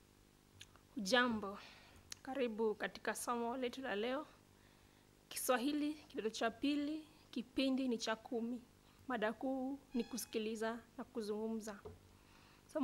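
A young woman speaks calmly into a microphone close by.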